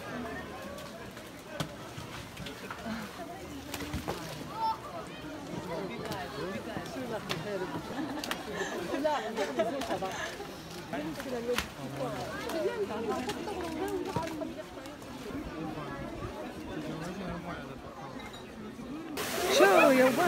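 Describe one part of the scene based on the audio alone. A crowd of onlookers chatters and murmurs outdoors.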